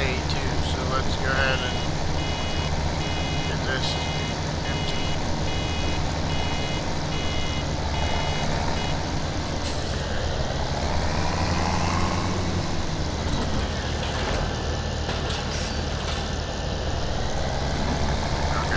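A baler whirs and clatters as it gathers straw.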